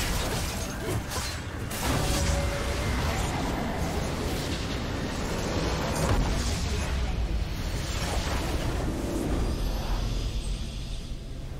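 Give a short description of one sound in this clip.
Magical blasts crackle and boom in a fierce battle.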